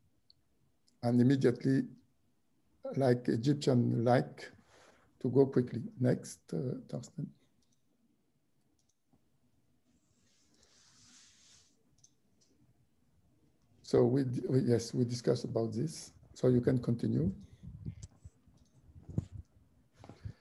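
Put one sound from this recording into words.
A middle-aged man speaks calmly through an online call microphone, with pauses.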